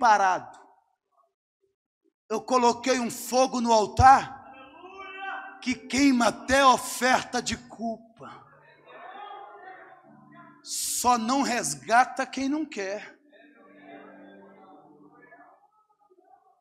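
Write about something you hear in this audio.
A man preaches with passion into a microphone, his voice ringing through a large echoing hall.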